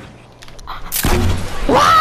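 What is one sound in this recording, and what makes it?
A gun fires in quick bursts.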